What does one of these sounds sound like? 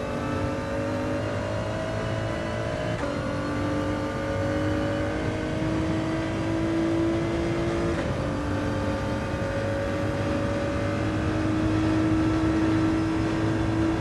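A racing car engine roars and revs higher through the gears, dropping sharply with each gear change.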